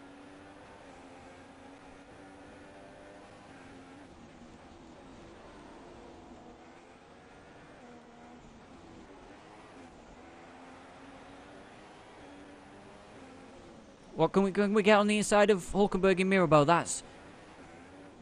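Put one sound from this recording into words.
A racing car engine whines quietly and steadily, shifting pitch as it changes gear.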